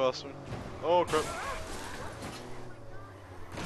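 A car crashes into a lamppost with a loud bang.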